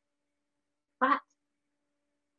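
A middle-aged woman says a short word over an online call.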